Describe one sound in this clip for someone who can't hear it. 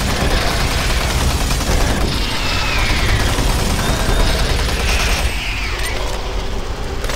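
Monsters growl and screech.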